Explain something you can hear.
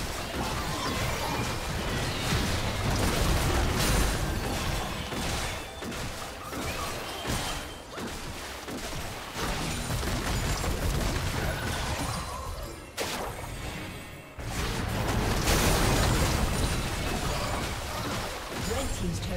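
Game spell effects whoosh and crackle in bursts.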